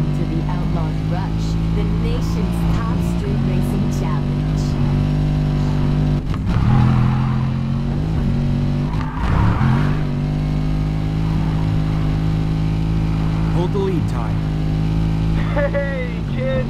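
A racing car engine roars at high revs, shifting gears now and then.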